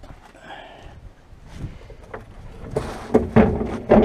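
A plastic bin lid thumps shut.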